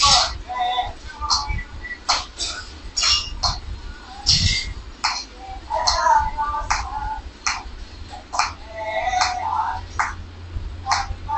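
Several people clap their hands in a steady rhythm.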